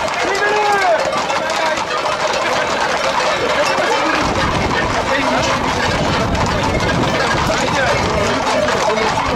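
A crowd of young men shouts and cheers excitedly outdoors.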